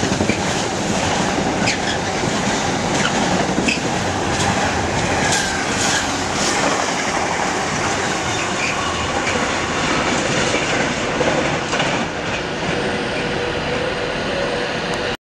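A long freight train rumbles past close by and slowly fades into the distance.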